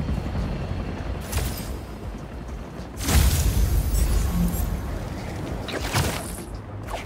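Wind rushes past in loud whooshes of a swinging flight.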